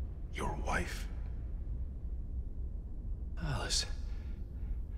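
A man speaks quietly and tensely, close by.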